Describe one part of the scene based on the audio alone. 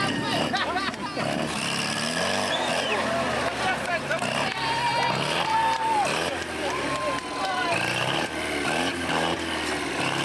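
Tyres churn through mud.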